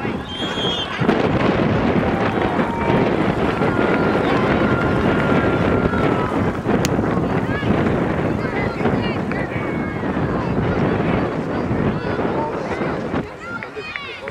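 Wind rushes past the microphone outdoors.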